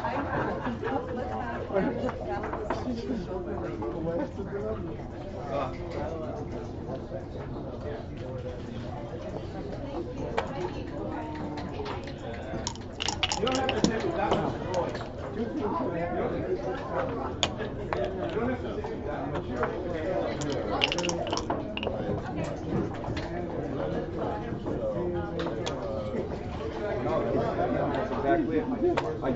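Game checkers click and slide on a wooden board.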